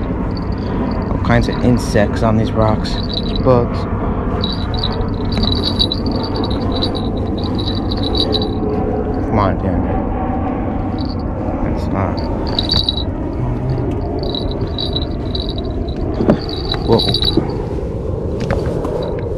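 Wind blows steadily across the microphone outdoors.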